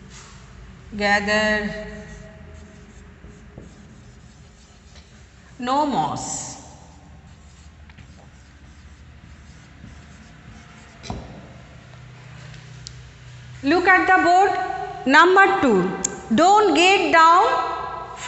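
A woman speaks clearly into a microphone, with long pauses.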